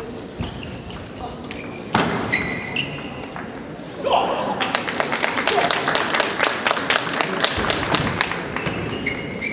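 Ping-pong balls tap from other tables in a large echoing hall.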